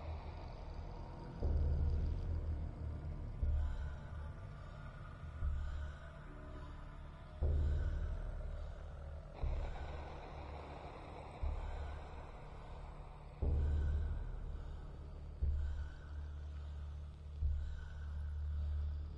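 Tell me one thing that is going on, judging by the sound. Dark, brooding music plays, with a deep booming beat about every two seconds.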